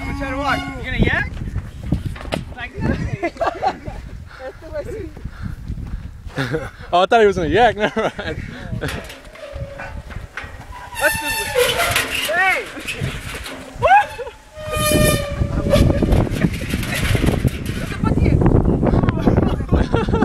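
Teenage boys shout and laugh excitedly nearby.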